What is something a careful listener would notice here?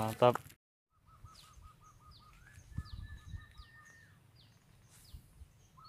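Footsteps squelch through wet grass.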